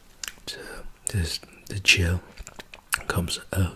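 A man whispers softly close to a microphone.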